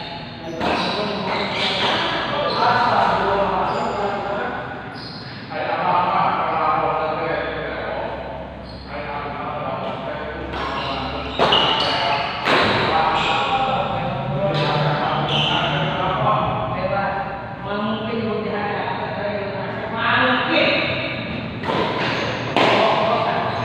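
Shuttlecocks are struck sharply with rackets.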